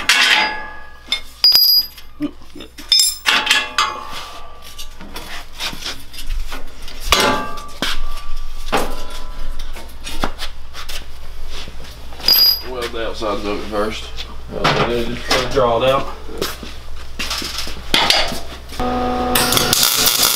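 Metal parts clank and knock as two men handle a frame.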